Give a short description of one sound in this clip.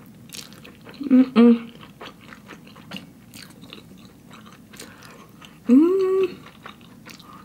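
A young woman lets out short, loud sounds of pleasure close to the microphone.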